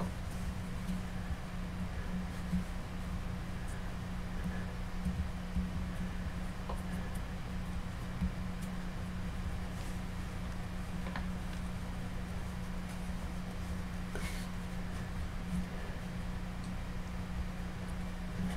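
Hands turn and tap a small clay head with soft knocks.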